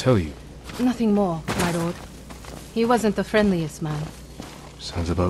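A young woman answers calmly.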